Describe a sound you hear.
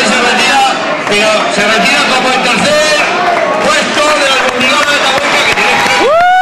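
A man speaks excitedly into a microphone through loudspeakers.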